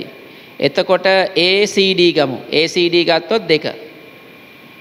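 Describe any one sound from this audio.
A man reads aloud in a clear, steady voice in an echoing room.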